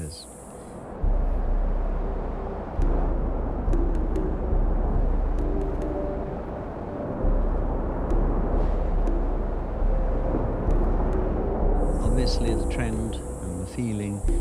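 A car engine hums as a car drives along a road.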